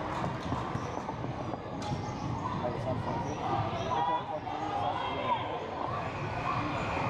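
A crowd of spectators chatters, echoing in a large hall.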